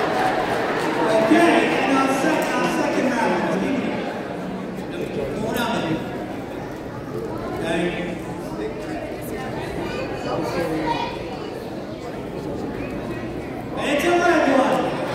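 A children's choir sings together in a large, echoing hall.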